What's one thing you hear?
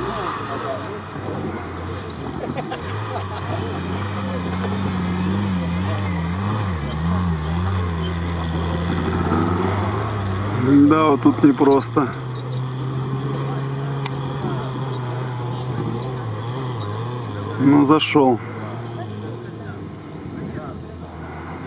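Off-road engines rev and roar outdoors, rising and falling in pitch.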